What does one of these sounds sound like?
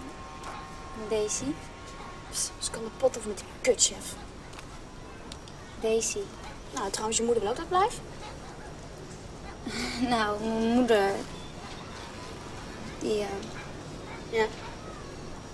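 A young woman speaks quietly and earnestly nearby.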